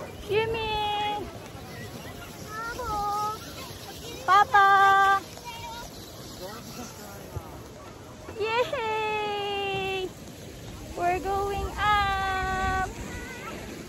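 A young woman speaks close by in a lively, sing-song voice.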